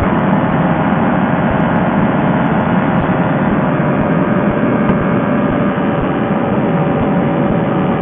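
Wind rushes hard past the open cockpit.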